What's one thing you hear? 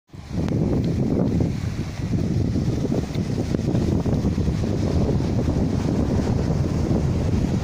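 Sea waves wash against rocks on the shore.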